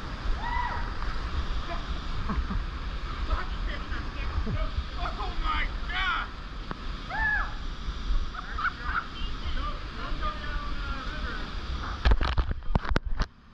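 A kayak paddle splashes into the water.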